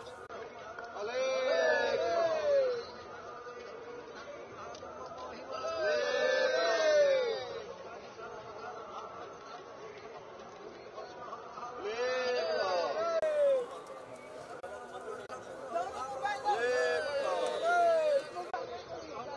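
A group of men chant loudly together in repeated bursts.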